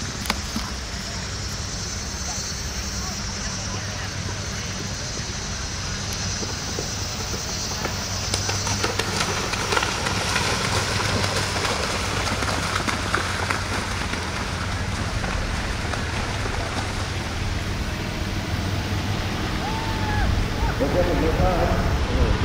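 A horse's hooves thud on the ground.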